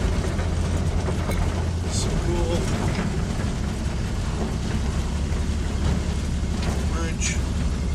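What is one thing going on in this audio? Tyres rattle over a bridge deck.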